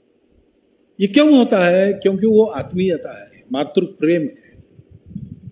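An elderly man speaks through a microphone and loudspeakers, slowly and with emphasis, in a large echoing space.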